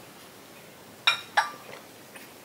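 A cup clinks down on a saucer.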